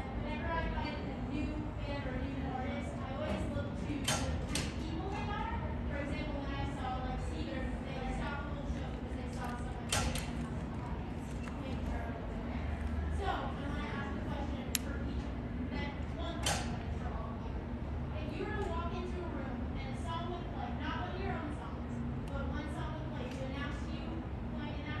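A man speaks calmly through a microphone in a large, echoing hall.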